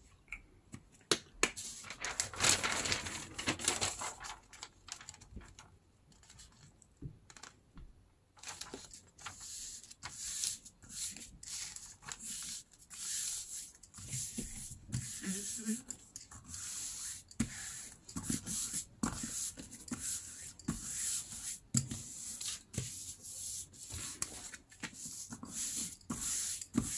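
Newspaper pages rustle and crinkle as they are handled.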